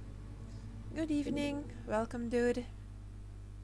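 A young woman speaks briefly with animation into a close microphone.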